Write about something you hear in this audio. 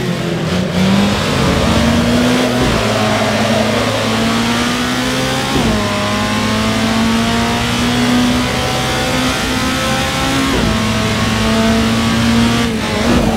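A race car engine roars steadily, rising in pitch through each gear and dropping sharply at each gear change.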